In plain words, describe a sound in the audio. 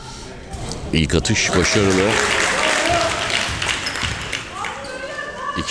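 A crowd cheers loudly in a large echoing hall.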